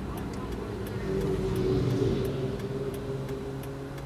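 A motorcycle engine revs nearby as it passes.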